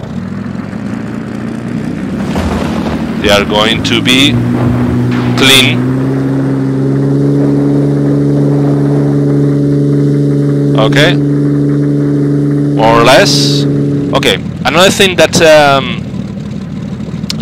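A small plane's engine drones steadily, rising in pitch as it runs up.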